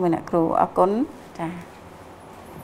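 A middle-aged woman speaks calmly and clearly, close to the microphone.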